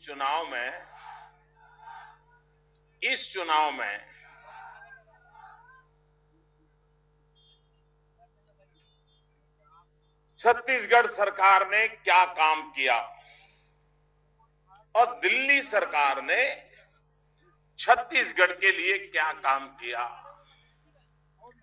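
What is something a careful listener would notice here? An elderly man speaks forcefully into a microphone, heard through loudspeakers outdoors, with pauses between phrases.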